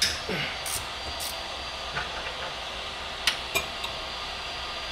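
A metal wrench clicks and clinks against bolts.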